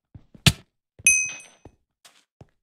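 A bright chime rings as an item is picked up.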